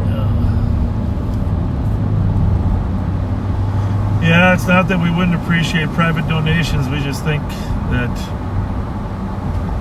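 A car drives along a road with a low, steady rumble.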